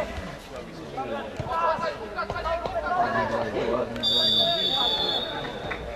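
Young men shout to each other from across an open field.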